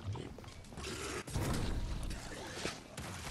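A glass bottle shatters and bursts into flames with a loud whoosh.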